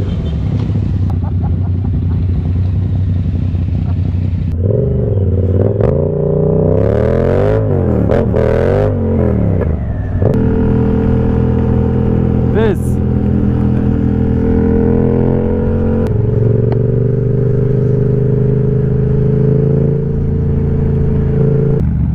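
A motorcycle engine hums close by and revs up and down.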